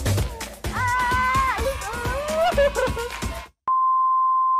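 A young man speaks and laughs close by.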